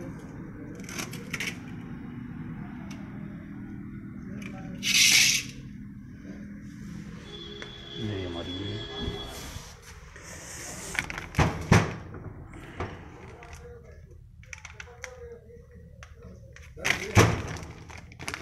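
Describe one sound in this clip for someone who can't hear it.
Metal clutch parts clunk and knock as they are handled.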